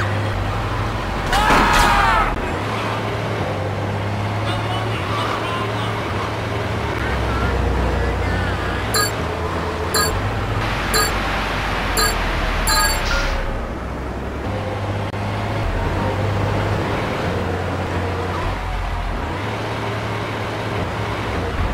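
A fire truck's engine rumbles as it drives.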